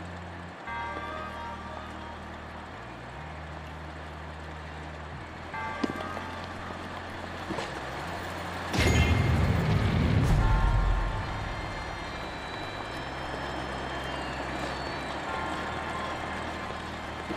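Footsteps patter on a stone floor in a large echoing hall.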